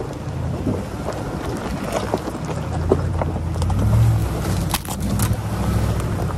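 A pickup truck engine rumbles low as it crawls along a trail.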